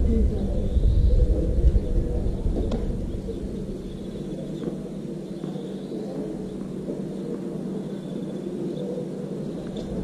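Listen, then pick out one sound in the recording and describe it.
A tennis ball bounces on a hard court before a serve.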